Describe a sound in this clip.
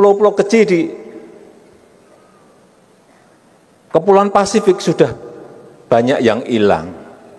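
A man speaks with animation into a microphone in a large echoing hall, pausing between phrases.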